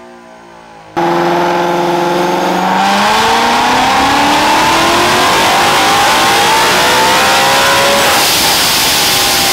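A car engine revs up hard and climbs steadily in pitch with a loud roar.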